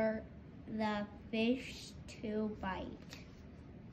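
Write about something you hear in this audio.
A young boy reads aloud close by.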